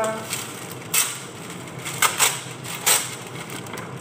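Paper towels tear off a roll.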